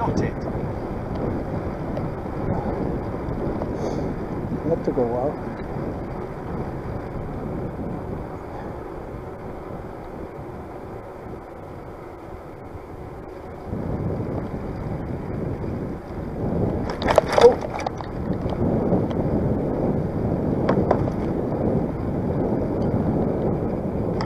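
A bicycle rolls over a paved path.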